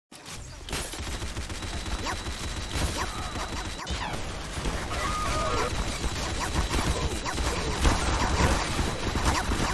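A minigun fires in a rapid, continuous rattle.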